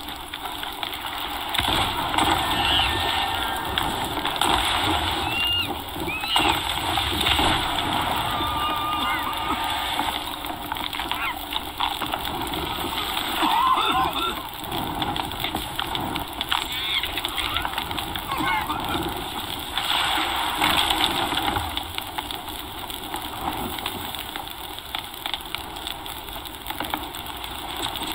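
Stormy sea waves crash and rush steadily.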